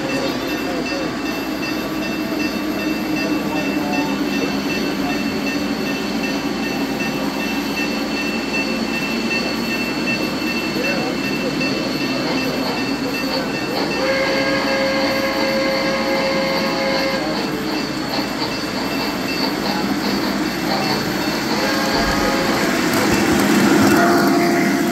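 A model steam locomotive hums and rumbles steadily along its track.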